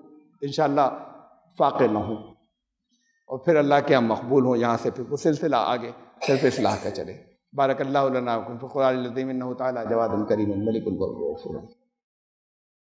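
An elderly man speaks steadily and earnestly into a headset microphone.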